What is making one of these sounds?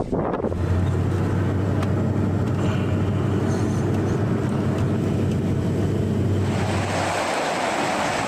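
A fire engine drives along a road.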